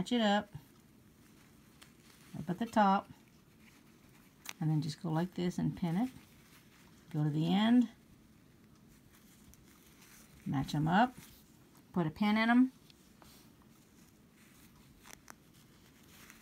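Fabric rustles softly as hands fold it.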